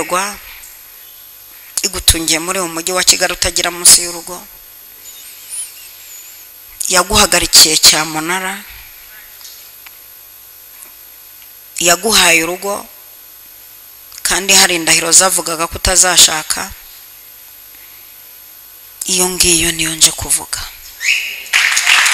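A middle-aged woman speaks slowly into a microphone in short phrases, with pauses.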